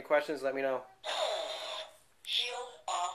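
A toy laser gun plays a zapping sound effect.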